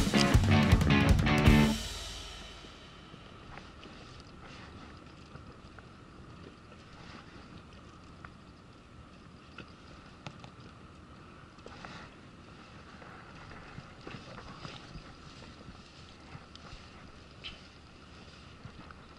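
Water laps gently against a boat.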